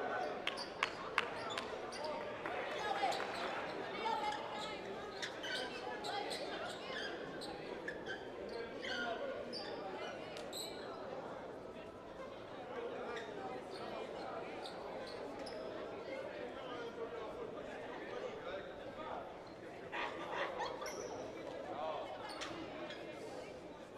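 A crowd chatters and calls out in the stands.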